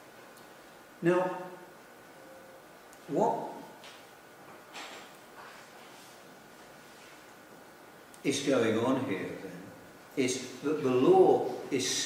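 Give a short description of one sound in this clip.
An elderly man speaks calmly and haltingly, close by.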